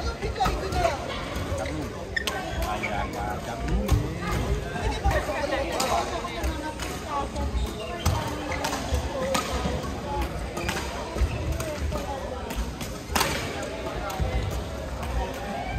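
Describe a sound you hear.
Rackets strike a shuttlecock in sharp pops back and forth.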